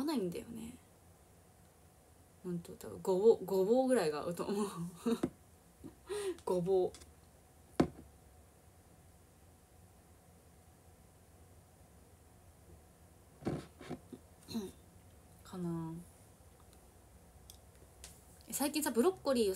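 A young woman talks casually and close by, in short bursts with pauses.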